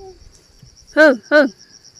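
A cow lows briefly.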